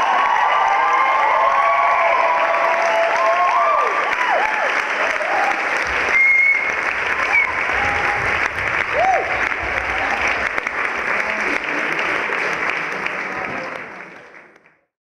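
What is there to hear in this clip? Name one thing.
A large audience applauds loudly in a big hall, then the applause fades out.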